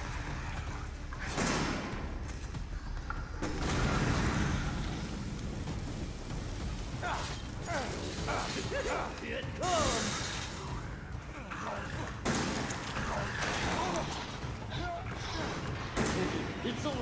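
Gunshots blast loudly.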